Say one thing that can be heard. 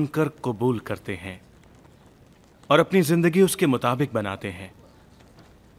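A man speaks calmly and warmly, close by.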